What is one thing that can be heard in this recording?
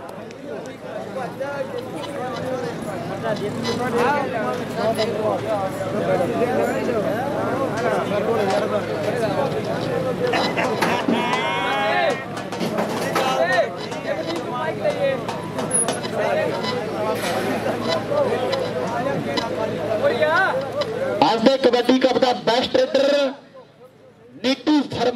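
A crowd of men chatters and calls out outdoors.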